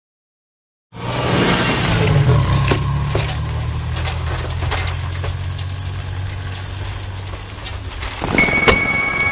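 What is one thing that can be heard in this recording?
A truck engine rumbles steadily as it drives through snow.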